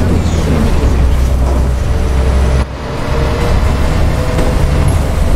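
A bus rolls along a road with tyre noise.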